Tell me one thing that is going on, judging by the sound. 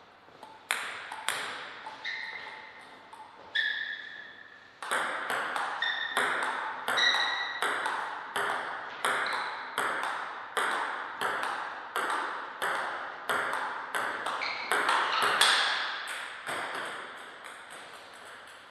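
A ping-pong ball clicks back and forth between paddles and a table in a quick, steady rhythm, echoing in a large hall.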